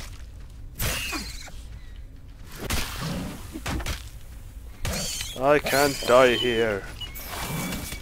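A large creature shrieks and screeches.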